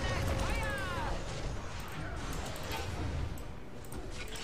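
Magic blasts and zaps crackle in a fight.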